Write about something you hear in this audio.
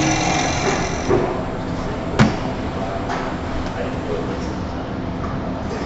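A chisel scrapes against spinning wood.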